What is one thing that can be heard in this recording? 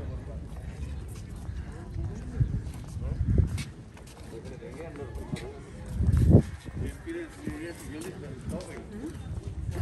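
Footsteps tap on stone paving.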